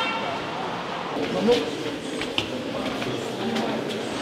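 Footsteps echo in a hallway.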